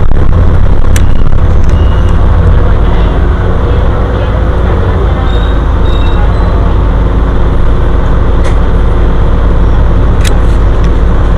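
Loose fittings rattle and click inside the bus.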